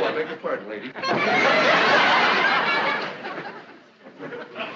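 Children laugh loudly.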